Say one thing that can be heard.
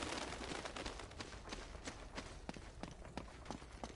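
Footsteps patter on stone steps.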